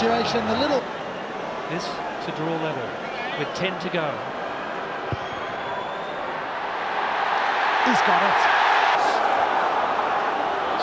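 A large crowd murmurs and roars in a big open stadium, swelling louder.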